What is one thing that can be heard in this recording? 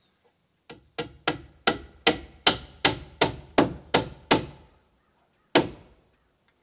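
A hammer strikes a nail into wood in quick, ringing blows, outdoors.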